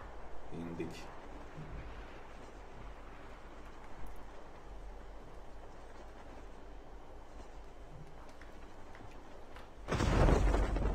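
Wind rushes steadily during a parachute descent.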